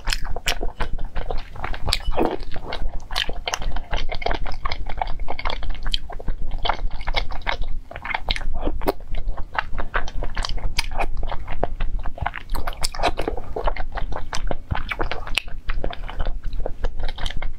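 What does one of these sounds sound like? A wooden spoon scrapes and clinks against a glass bowl.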